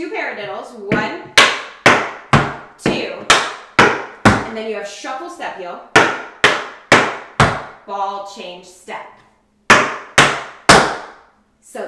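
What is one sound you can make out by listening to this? Hard shoes stomp and tap sharply on a wooden board in a steady rhythm.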